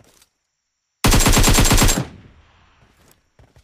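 A rifle fires a rapid burst of shots that echoes away.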